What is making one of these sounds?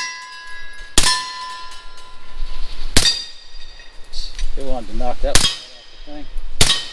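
A rifle fires single loud shots outdoors, each ringing out briefly.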